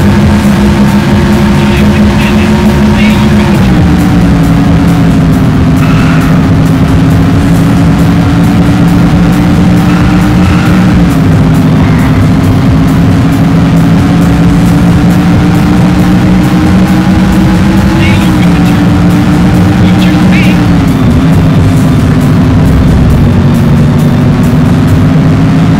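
A race car engine roars steadily at high speed, its pitch dipping and rising as it shifts.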